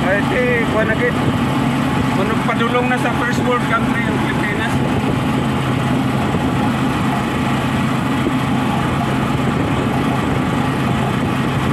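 Tyres rumble over a rough dirt road.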